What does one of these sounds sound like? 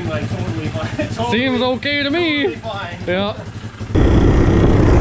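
A small motorbike engine idles.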